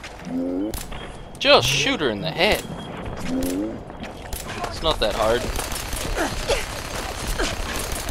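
Laser rifle shots fire in quick bursts, with sharp zaps.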